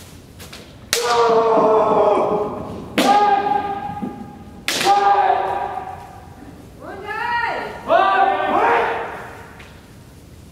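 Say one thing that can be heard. Martial artists shout loud, drawn-out cries that echo through a large hall.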